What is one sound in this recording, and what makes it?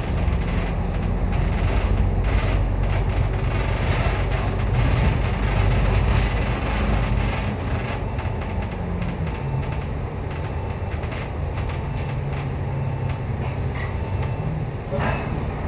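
Traffic hums along a busy city street.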